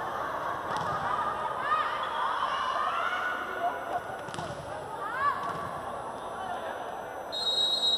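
A large crowd cheers and chatters in a big echoing hall.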